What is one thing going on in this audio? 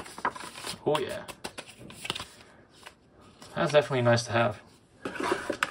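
Paper and cardboard rustle and scrape as they are handled.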